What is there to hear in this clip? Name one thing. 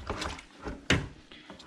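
A metal rod stirs liquid in a plastic bucket.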